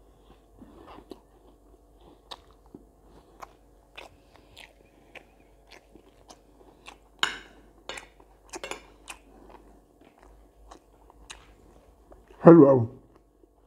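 A man chews food close to a microphone.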